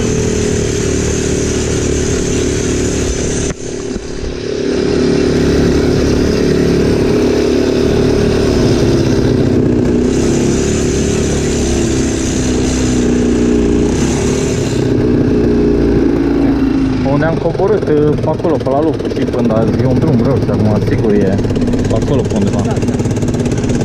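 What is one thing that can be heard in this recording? A quad bike engine drones steadily close by as it drives along.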